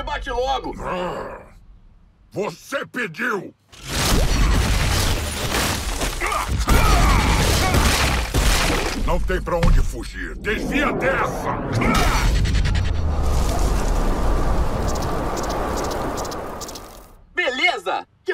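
A large creature growls through clenched teeth.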